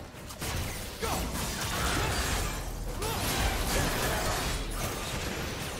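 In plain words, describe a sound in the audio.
Fantasy battle sound effects crackle and boom as spells and attacks hit.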